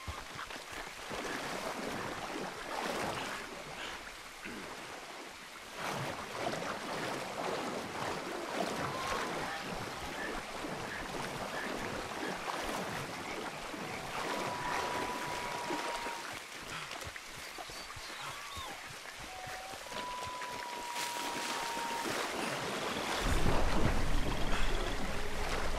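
Water splashes as a man wades through a swamp.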